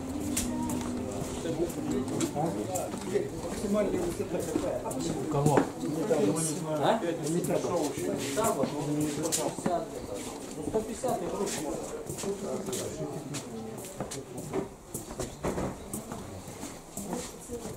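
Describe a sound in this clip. A busy indoor crowd murmurs with voices nearby.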